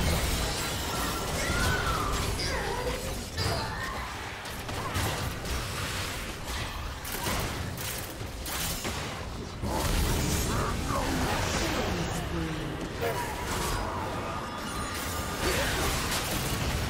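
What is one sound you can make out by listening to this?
Spell effects whoosh and blast in a game fight.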